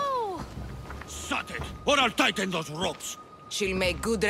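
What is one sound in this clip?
A man speaks gruffly.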